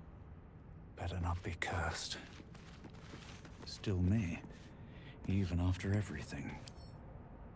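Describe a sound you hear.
A young man talks calmly and close to a microphone, in short bursts.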